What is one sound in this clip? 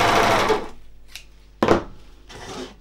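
Scissors snip through thread.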